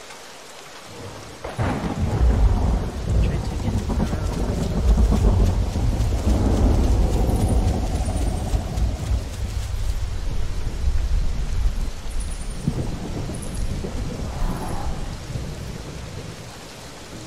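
A large animal's footsteps thud through grass.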